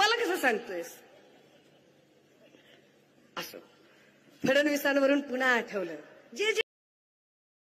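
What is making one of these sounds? A woman speaks forcefully into a microphone over loudspeakers.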